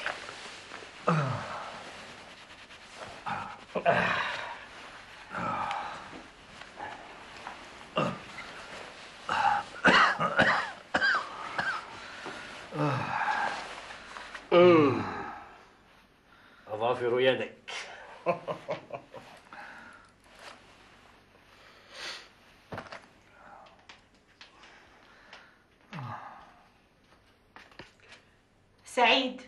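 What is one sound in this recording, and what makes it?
A middle-aged man speaks with feeling, close by.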